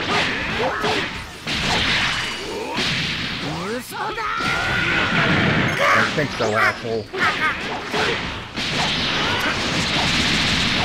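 Punches and energy blasts crash and whoosh in a fast fight.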